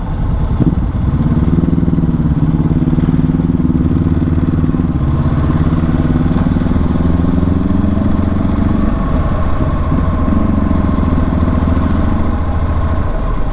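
A motorcycle engine revs up and down as the rider shifts gears.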